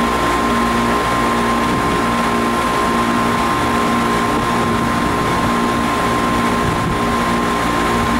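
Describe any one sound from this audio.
Air conditioning units hum steadily nearby.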